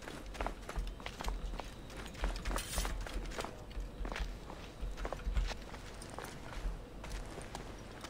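Footsteps patter quickly on stone steps.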